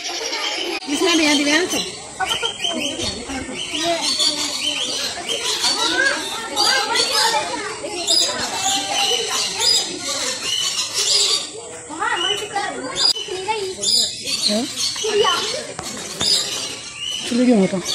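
A young boy talks nearby.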